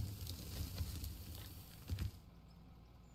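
Dirt pours from a loader bucket with a rushing hiss.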